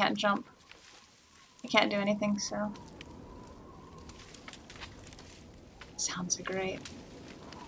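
A young woman talks calmly into a close microphone.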